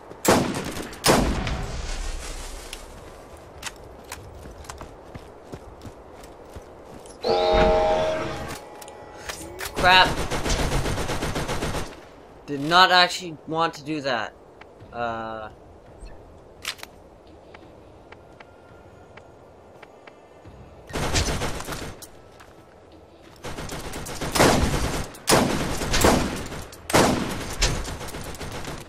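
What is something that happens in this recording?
Loud rifle shots boom and echo.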